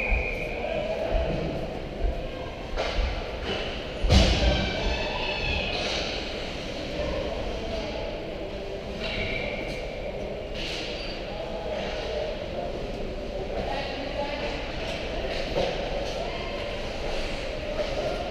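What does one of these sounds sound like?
Skates scrape and glide across the ice in a large echoing rink.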